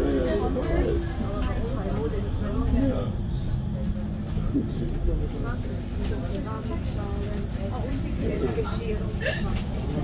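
A tram rumbles past on its rails, close by.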